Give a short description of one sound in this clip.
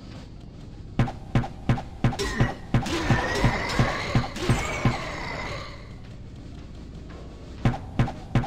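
Sword blows strike in a rapid series of sharp hits.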